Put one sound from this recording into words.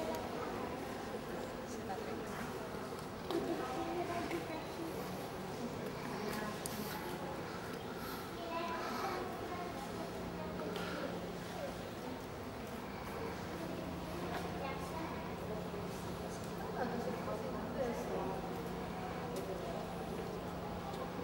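Adult men and women chat at a distance in an open courtyard.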